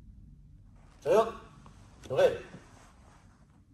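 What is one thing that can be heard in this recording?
A man shouts out sharply twice in a room with a slight echo.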